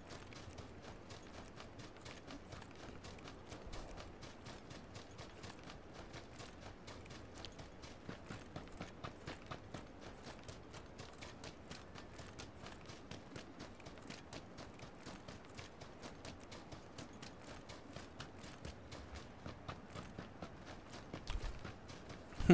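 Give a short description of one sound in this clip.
Footsteps run quickly through dry grass.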